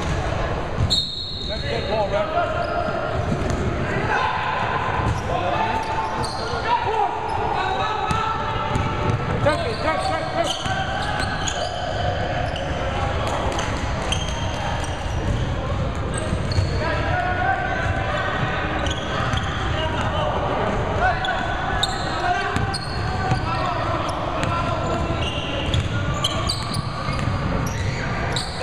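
Adult men shout and call out across the court.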